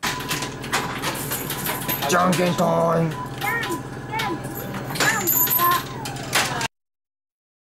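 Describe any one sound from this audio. An arcade game plays bright electronic beeps and chimes.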